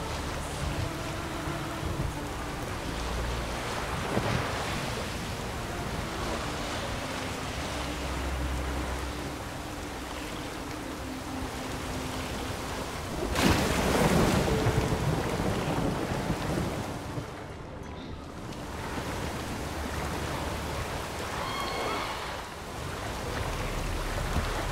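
Wind howls through a storm at sea.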